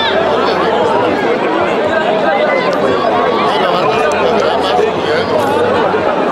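A large outdoor crowd cheers and chatters loudly.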